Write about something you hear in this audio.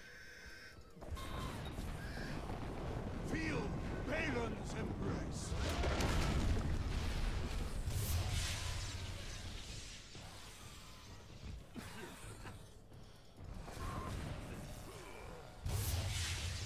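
Fiery magic blasts roar and crackle in a fight.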